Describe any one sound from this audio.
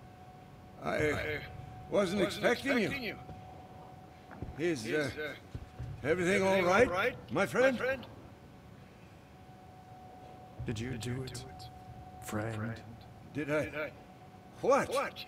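A man speaks with surprise, close by.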